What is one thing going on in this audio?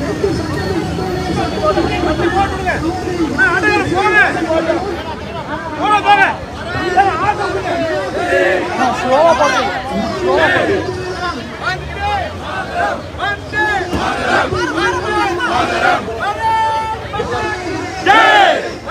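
A crowd of people chatters and murmurs nearby.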